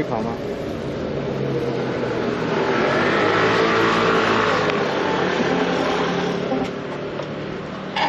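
A motorcycle engine hums and slows to a stop.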